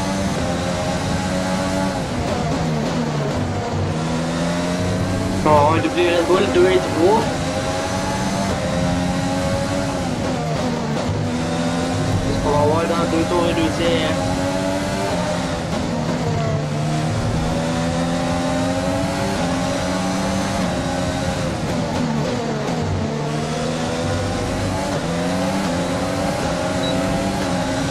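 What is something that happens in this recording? A racing car engine screams at high revs, rising in pitch through each gear and dropping sharply at every shift.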